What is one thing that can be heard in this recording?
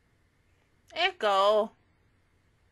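A young woman says a few words briefly, close to a microphone.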